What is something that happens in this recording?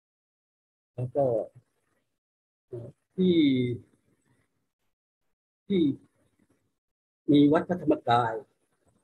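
An elderly man speaks calmly and slowly through a headset microphone, with pauses between phrases.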